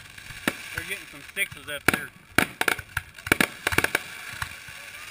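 Fireworks bang and pop overhead in quick bursts.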